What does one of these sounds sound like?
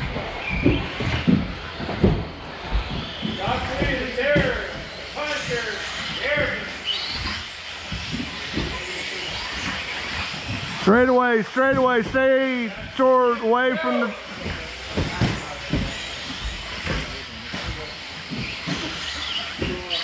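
Small electric motors whine as remote-control cars race by.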